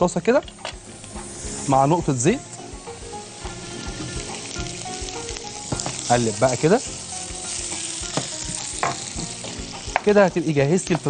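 Onions sizzle and hiss in a hot pan.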